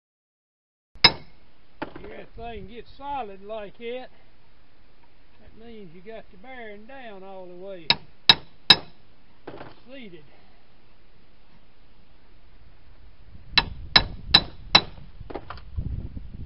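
A hammer strikes metal with sharp ringing blows.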